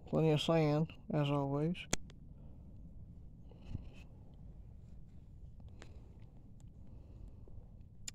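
A slow stream flows gently.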